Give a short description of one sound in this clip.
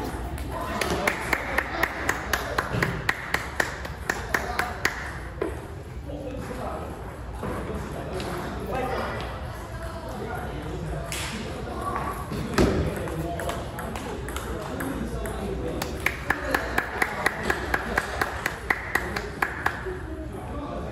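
A table tennis ball clicks rapidly back and forth off paddles and a table.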